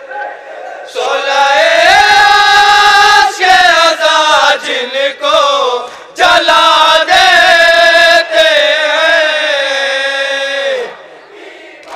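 A young man sings loudly and with feeling through a microphone, heard over loudspeakers outdoors.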